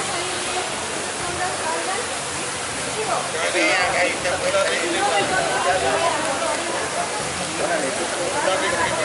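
A crowd of men and women chants together outdoors.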